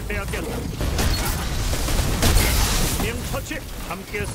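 Video game weapons fire and energy blasts crackle.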